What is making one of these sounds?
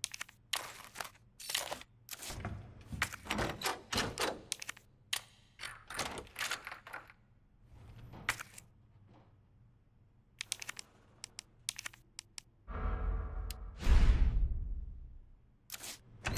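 Menu selections click and beep repeatedly.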